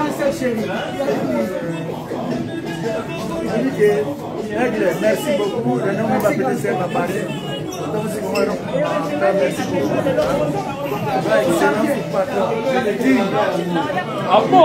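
An elderly man talks cheerfully, close by.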